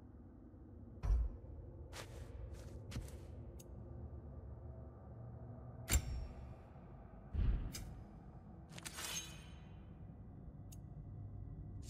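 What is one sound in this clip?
Short menu whooshes and clicks sound as pages change.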